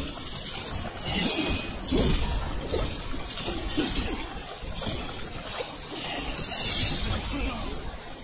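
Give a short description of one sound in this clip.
Water splashes heavily.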